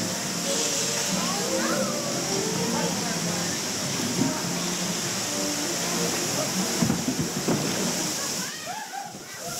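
A steady rush of water flows around a boat.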